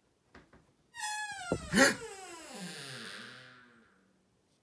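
A door creaks slowly open.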